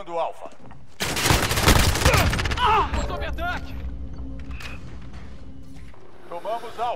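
Loud gunfire roars in heavy bursts.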